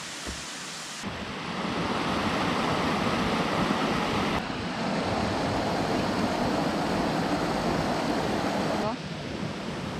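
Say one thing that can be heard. A stream splashes and rushes over rocks.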